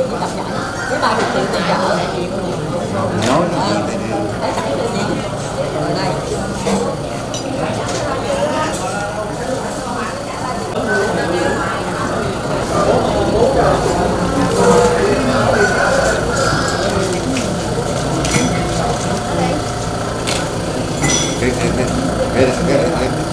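Men and women chatter together nearby in a lively crowd.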